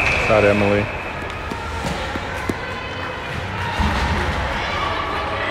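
Hockey sticks clack against a puck on the ice.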